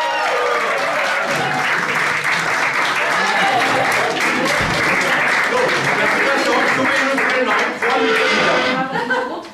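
A crowd of people claps their hands.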